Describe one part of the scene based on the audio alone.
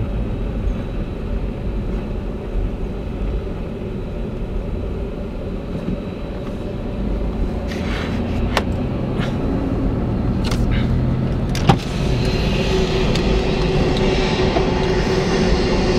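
Jet engines whine from aircraft nearby.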